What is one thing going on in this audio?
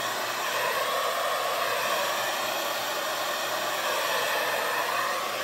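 A hair dryer blows air steadily close by.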